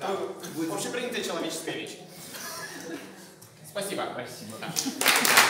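A young man speaks with animation to an audience in a room with a slight echo.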